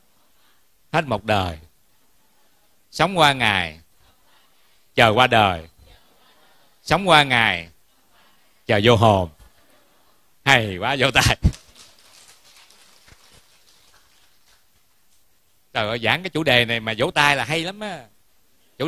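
A middle-aged man speaks with animation through a microphone in short phrases.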